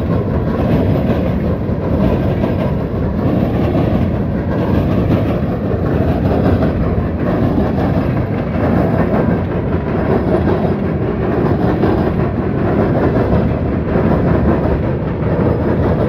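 A long freight train rumbles and clatters steadily along the tracks close by.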